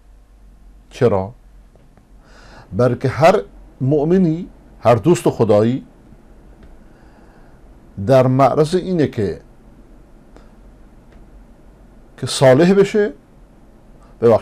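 A middle-aged man speaks calmly into a close microphone, pausing between phrases.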